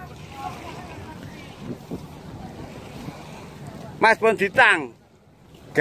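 Water splashes and laps against a concrete edge.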